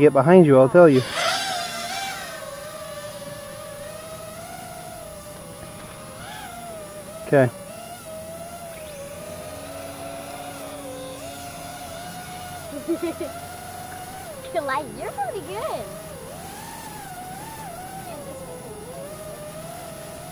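A small model airplane engine drones steadily, its pitch wavering up and down.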